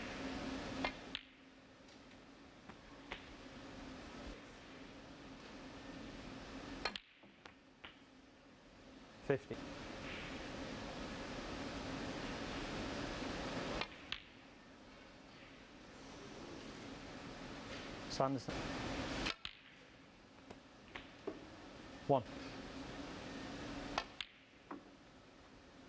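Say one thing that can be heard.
Snooker balls click together.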